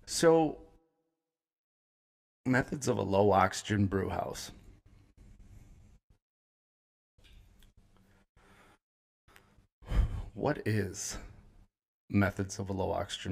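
A man talks calmly and close to a microphone, in short bursts with pauses.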